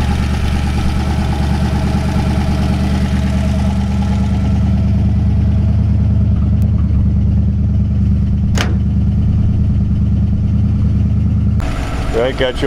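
A car engine idles with a steady low rumble.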